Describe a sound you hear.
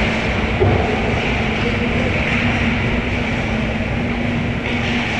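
Skates scrape and glide across the ice in a large echoing rink.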